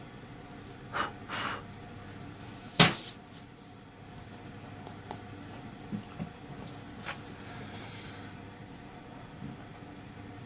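Paper rustles and crinkles as it is handled close by.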